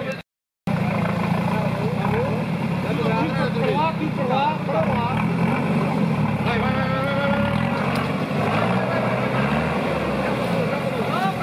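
Tyres spin and churn through wet mud.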